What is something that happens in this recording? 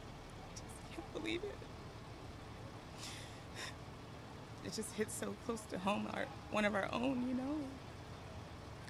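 A young woman speaks haltingly, close to a microphone.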